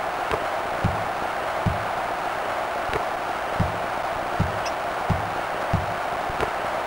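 A basketball bounces on a hard court in a steady dribble.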